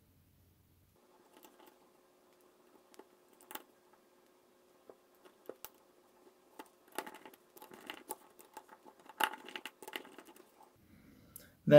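An electric screwdriver whirs in short bursts as screws are driven in.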